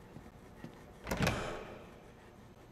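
A door bangs open.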